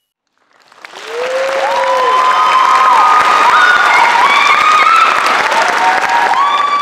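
An audience cheers and whistles.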